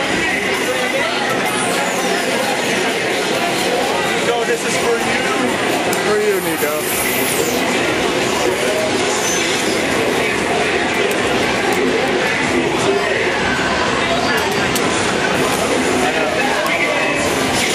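An arcade fighting game blares loud music and sound effects.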